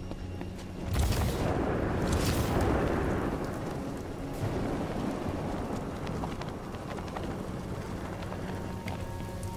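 Wind rushes past loudly, then fades.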